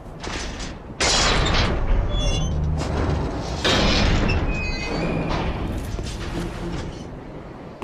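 Heavy gates creak and grind open with a loud rumble.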